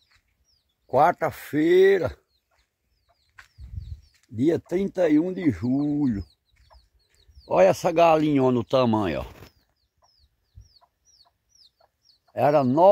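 A rooster crows loudly nearby, again and again.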